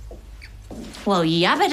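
A woman exclaims loudly in surprise.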